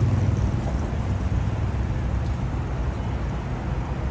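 Coffee pours into a cup of ice.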